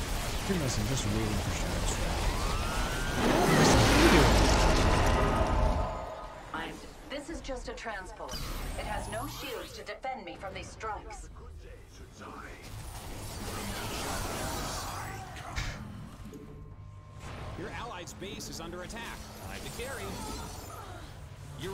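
Explosions and laser blasts sound from a video game battle.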